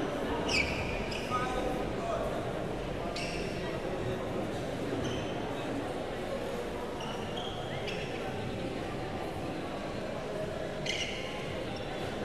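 Shoes squeak sharply on a floor.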